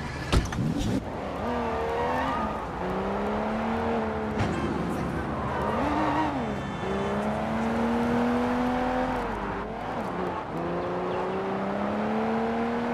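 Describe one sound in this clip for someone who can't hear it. A car engine revs up and down as the car speeds along.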